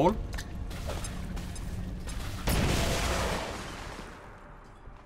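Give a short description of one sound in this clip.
An explosion bursts with a loud roar that fades away.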